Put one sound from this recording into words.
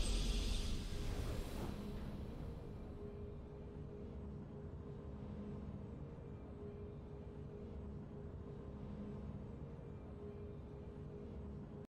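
A triumphant game fanfare plays and slowly fades.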